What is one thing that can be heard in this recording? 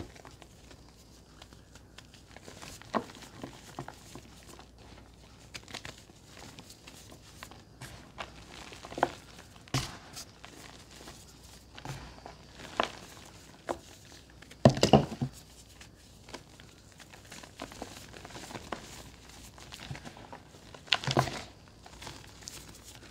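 Hands crumble chalky lumps into powder with soft crunching.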